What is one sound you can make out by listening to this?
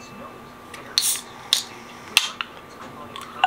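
A drink can's tab clicks open with a hiss.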